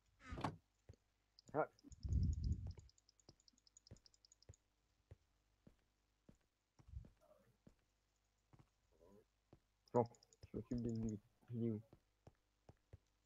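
Footsteps tap lightly on hard blocks.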